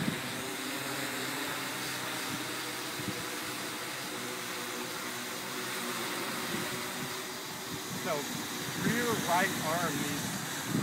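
A drone's propellers whir steadily overhead.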